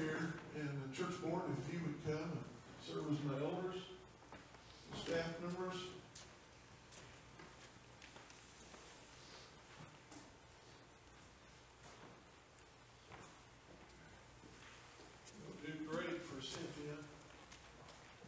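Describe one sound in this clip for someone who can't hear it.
An elderly man speaks calmly through a microphone and loudspeaker in an echoing hall.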